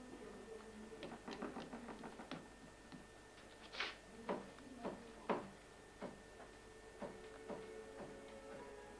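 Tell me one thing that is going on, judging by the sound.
A paintbrush dabs and scrapes against a stretched canvas.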